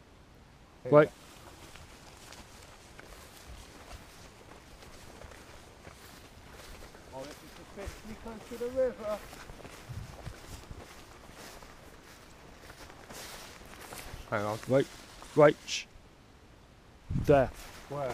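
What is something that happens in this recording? A man calls out loudly nearby, in short bursts.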